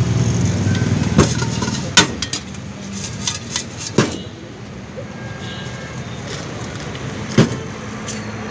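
A spoon clinks and scrapes against a steel bowl.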